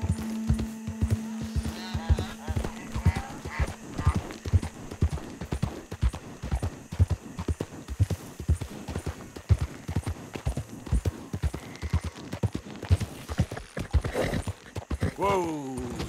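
A horse's hooves thud steadily on a dirt path.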